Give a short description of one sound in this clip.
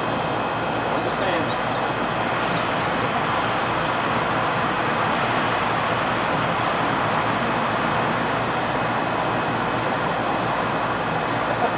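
A young man calls out from a distance outdoors.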